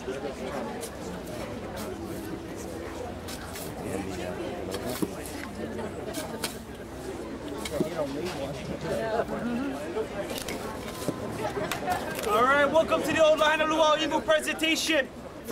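A shovel scrapes and digs into sand.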